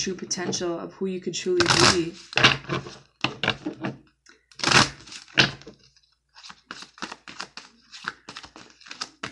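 Playing cards riffle and snap as they are shuffled.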